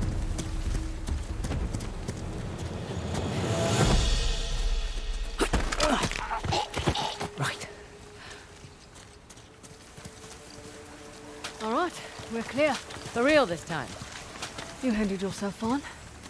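Footsteps scuff over stone and grass.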